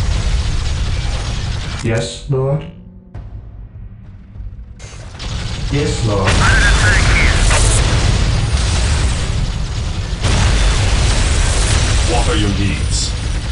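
Gunfire and explosions rumble in a battle.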